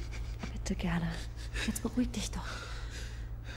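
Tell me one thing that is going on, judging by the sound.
A woman sobs and whimpers close by.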